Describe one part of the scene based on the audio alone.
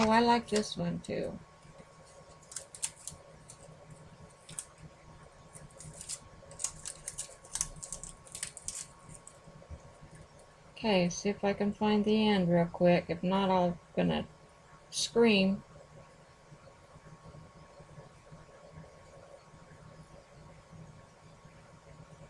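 Paper cards rustle and tap on a table.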